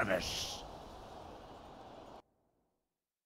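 A short victory jingle rings out and fades away.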